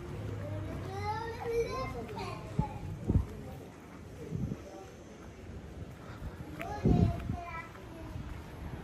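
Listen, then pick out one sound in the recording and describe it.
A young child calls out nearby.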